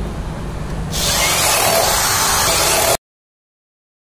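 A cordless drill whirs loudly, driving a screw into wood.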